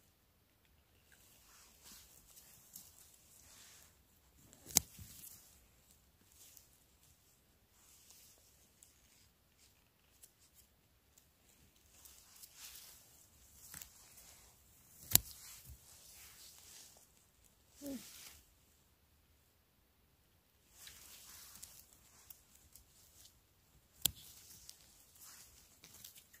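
Gloved hands rustle through moss and dry needles.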